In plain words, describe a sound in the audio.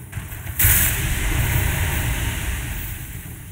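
A heavy body crashes down with a loud whoosh.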